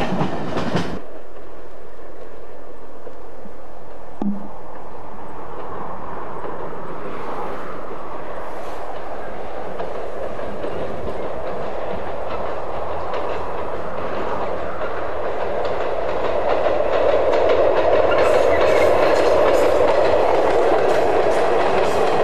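A diesel train approaches from a distance, its engine droning louder as it nears.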